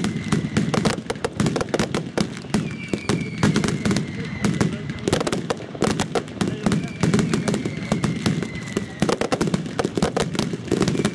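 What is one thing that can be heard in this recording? Fireworks whistle as they shoot up.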